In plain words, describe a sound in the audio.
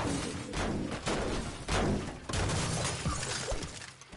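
Wooden stairs snap into place with quick clunks.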